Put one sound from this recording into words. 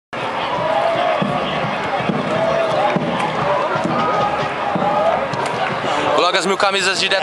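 A crowd chants and sings in an open stadium.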